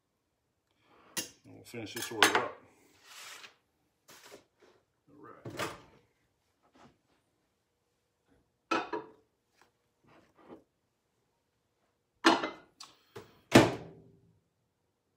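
Glass jars and bottles knock and clink on a counter.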